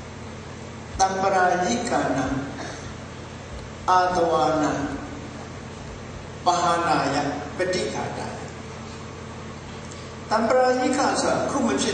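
An elderly man speaks calmly into a microphone, in short phrases with pauses.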